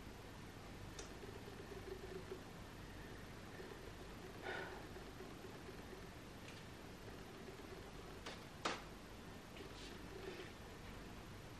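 A young woman speaks calmly and softly nearby.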